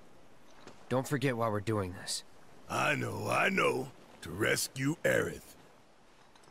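A young man replies in a calm, low voice.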